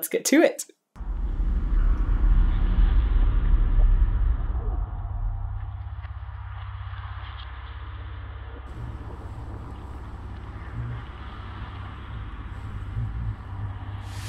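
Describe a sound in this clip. Music with a deep, throbbing bass plays.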